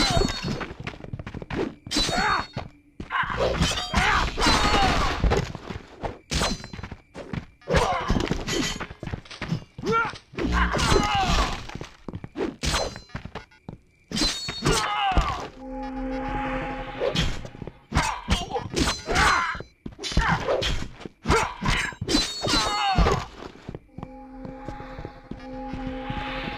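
Swords clash and slash in quick, repeated blows.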